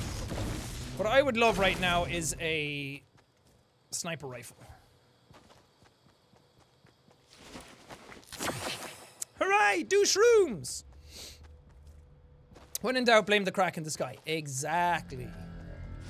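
A young man speaks with animation into a microphone, close up.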